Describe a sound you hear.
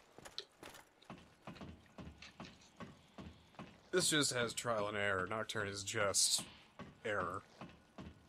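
Hands and feet knock on a wooden ladder rung by rung.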